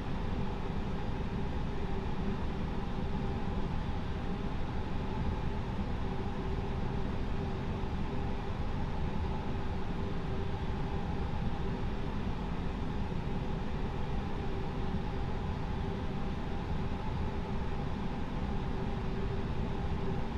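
An aircraft's engines hum steadily from inside a cockpit.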